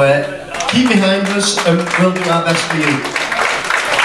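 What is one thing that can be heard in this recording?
A man speaks into a microphone through a loudspeaker.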